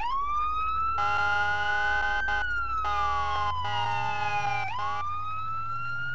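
An air horn blasts in steady bursts.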